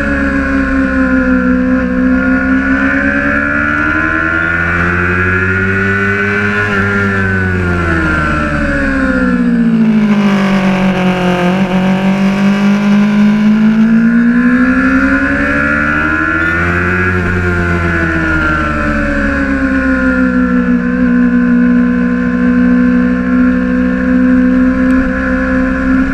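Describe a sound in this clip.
A motorcycle engine roars loudly close by, its pitch rising and falling as it speeds up and slows for bends.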